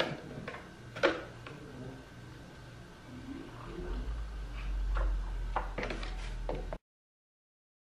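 Hot water pours from a kettle into a paper cup.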